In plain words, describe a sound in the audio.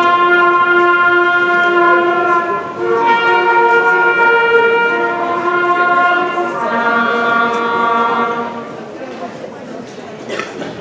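A big band plays along.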